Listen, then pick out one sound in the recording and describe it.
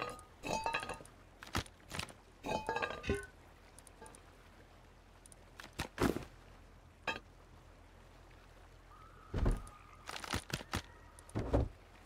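Game items clack and rattle as they are moved about.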